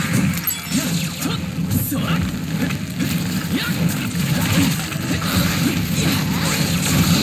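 Fiery blasts burst and crackle in a fast, hectic fight.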